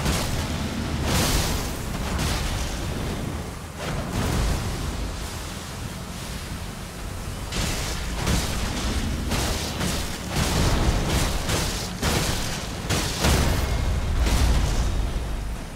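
Magic blasts burst with loud whooshing roars.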